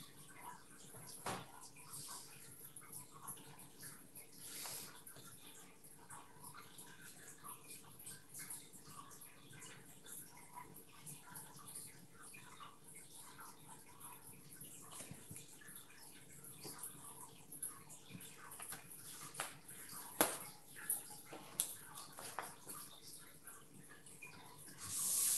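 A brush dabs softly on paper.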